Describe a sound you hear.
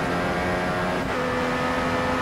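A gear change briefly cuts the racing car engine's scream.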